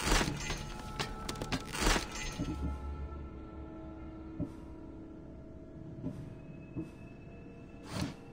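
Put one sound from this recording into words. Soft interface clicks sound as menu items change.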